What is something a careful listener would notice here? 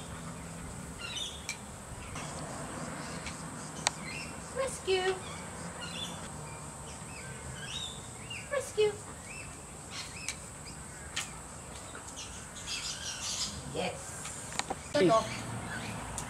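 A middle-aged woman talks to a dog.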